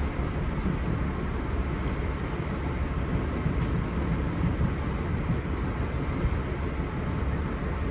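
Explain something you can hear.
A car's road noise rumbles steadily from inside as it drives.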